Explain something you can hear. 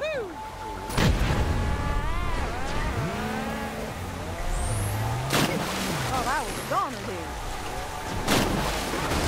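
A car crashes with a sharp bang.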